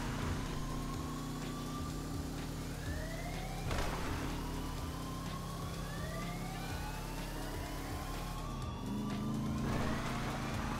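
Tyres roll over a road.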